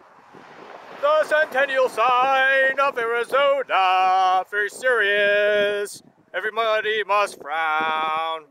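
A man sings loudly close by.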